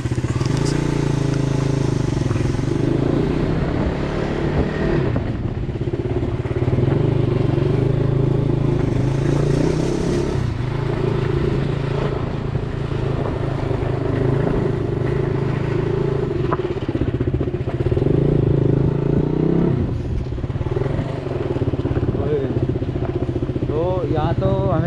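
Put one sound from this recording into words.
Tyres rumble over rough ground.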